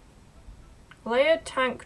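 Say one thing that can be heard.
A young woman speaks briefly and animatedly into a nearby microphone.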